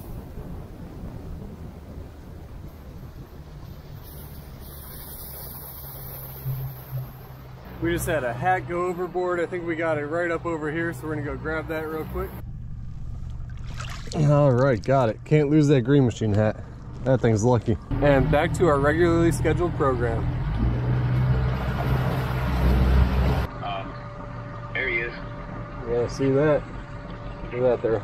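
Wind rumbles outdoors over open water.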